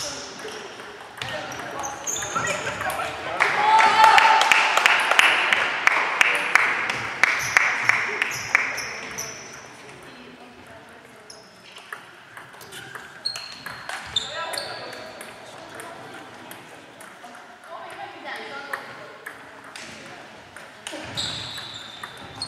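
A ping pong ball clicks sharply back and forth off paddles and a table in a large echoing hall.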